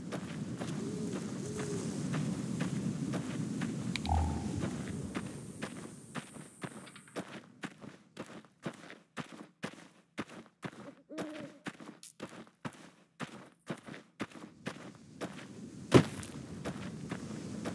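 Footsteps crunch steadily over gravel and dry ground.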